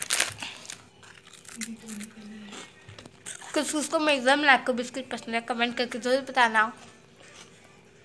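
A young girl crunches on a biscuit.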